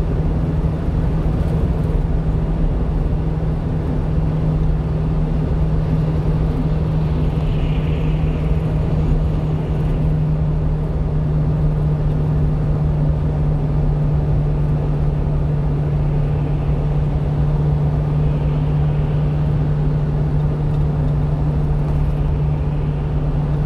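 A car engine hums steadily from inside a moving vehicle.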